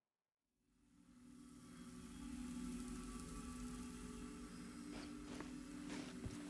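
Many televisions hiss with static.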